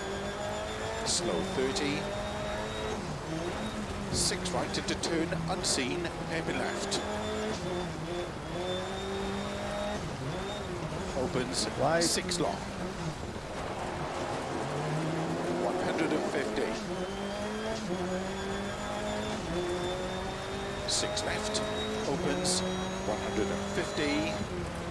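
A rally car engine revs and roars through gear changes.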